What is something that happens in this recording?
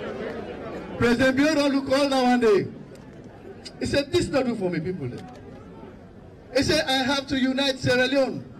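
A man speaks loudly into a microphone over a loudspeaker, in animated bursts.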